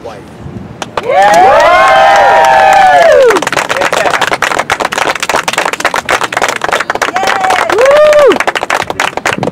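A crowd of guests whoops and cheers loudly outdoors.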